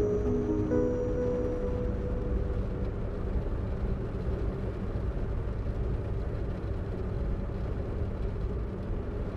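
A car engine rumbles steadily as the car cruises.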